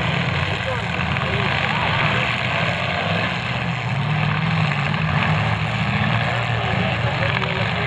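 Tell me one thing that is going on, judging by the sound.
Car engines roar loudly and rumble as the cars push through mud.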